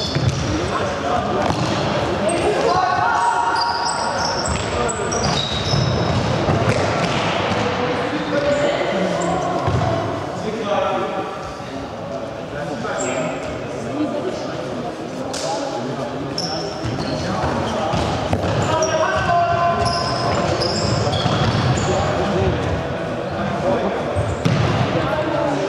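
Young spectators talk and shout nearby.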